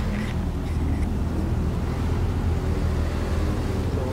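A truck engine revs and pulls away.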